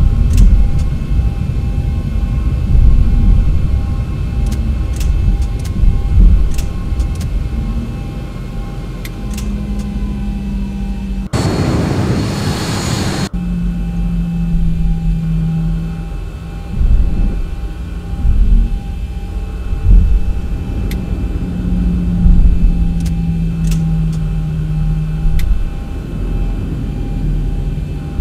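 Jet engines rumble steadily as an airliner taxis.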